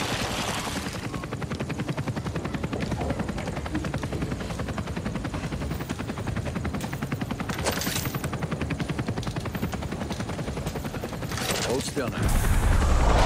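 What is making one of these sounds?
Quick footsteps thud on metal.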